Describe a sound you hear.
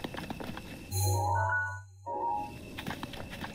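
A menu chimes open with a short tone.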